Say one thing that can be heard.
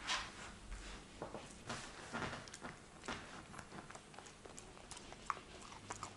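A dog chews and crunches on a treat close by.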